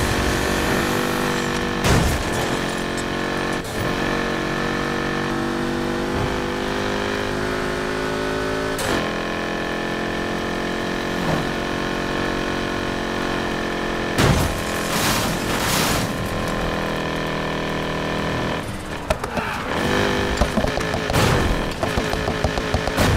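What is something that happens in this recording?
A car engine roars at high speed and shifts gears.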